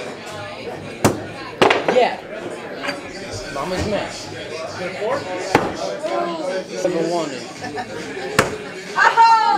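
Axes thud sharply into a wooden target.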